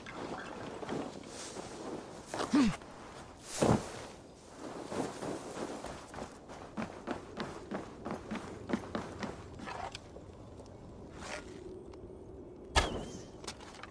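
Hands and feet scrape and thud while climbing a tree.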